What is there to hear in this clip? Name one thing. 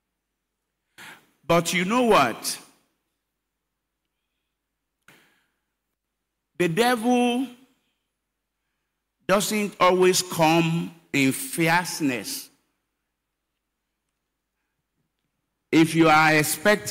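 An older man preaches with passion into a microphone, his voice ringing through a large hall, in short bursts with pauses.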